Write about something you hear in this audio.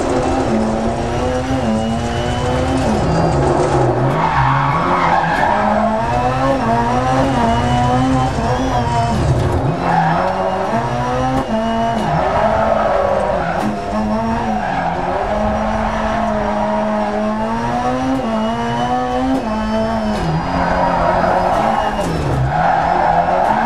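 Tyres skid and crunch over loose gravel.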